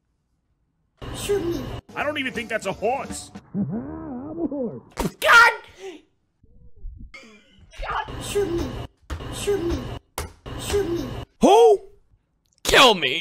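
A young man talks and laughs with animation, close to a microphone.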